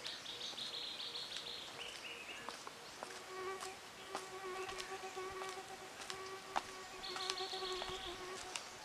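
Footsteps crunch softly on a dirt road.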